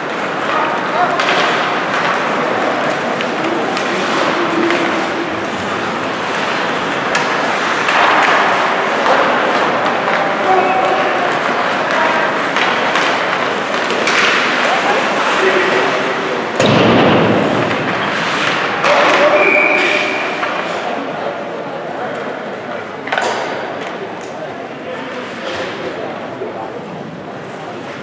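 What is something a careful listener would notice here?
Skates scrape and hiss across the ice.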